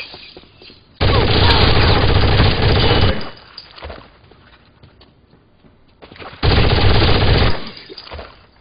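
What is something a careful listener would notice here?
Automatic gunfire rattles loudly in rapid bursts.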